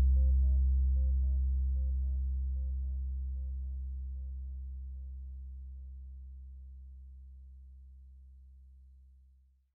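A synthesizer plays a deep, steady bass drone that slowly fades out.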